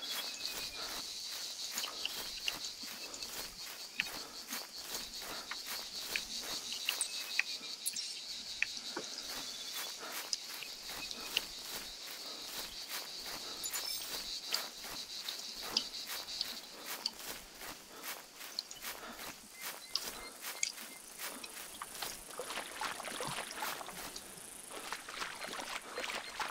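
Footsteps crunch steadily through dry grass and dirt.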